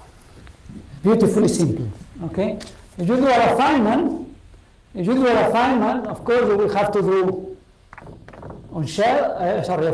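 A man lectures calmly, heard through a microphone in a large room.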